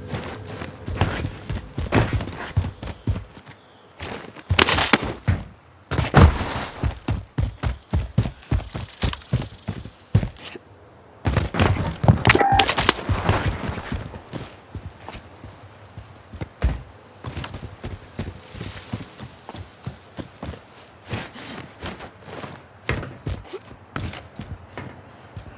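Quick footsteps run over hard ground and gravel.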